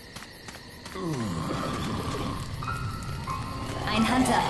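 A fire bottle burns with a soft roar.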